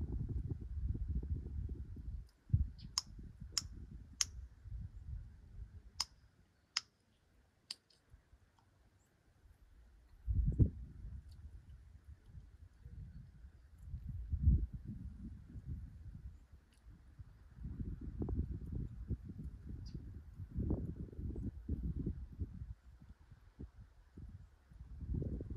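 Gusty wind blows outdoors and buffets the microphone.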